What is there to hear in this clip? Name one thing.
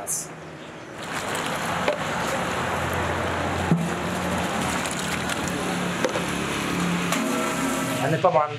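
Food bubbles and hisses in a large steaming pot.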